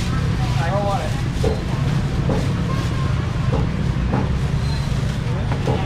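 Plastic bowls clatter as they are handled.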